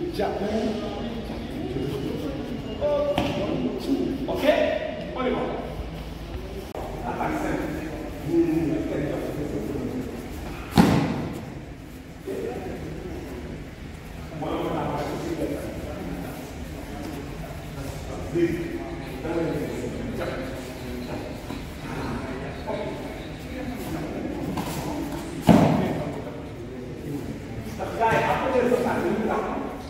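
A man talks with animation in an echoing hall.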